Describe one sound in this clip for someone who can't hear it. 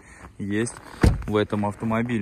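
A car door slams shut with a thud.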